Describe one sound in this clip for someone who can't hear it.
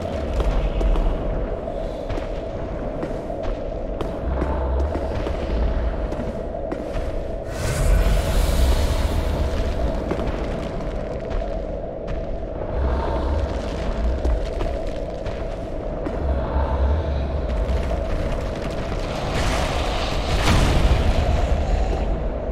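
Heavy armored footsteps thud on stone.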